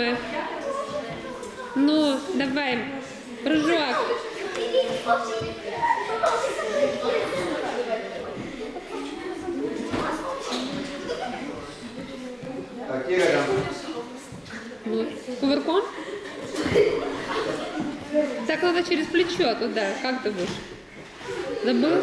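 Children talk and call out nearby in an echoing hall.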